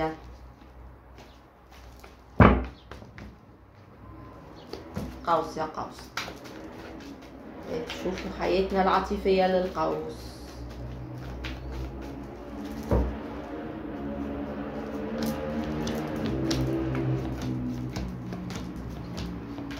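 Playing cards rustle and slap as they are shuffled.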